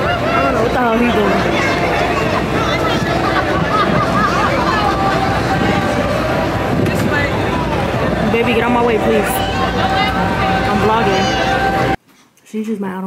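A crowd chatters outdoors in a lively murmur.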